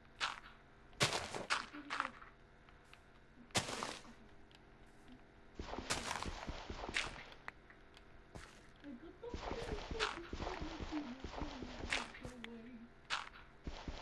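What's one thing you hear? Dirt crumbles and breaks apart in quick knocks.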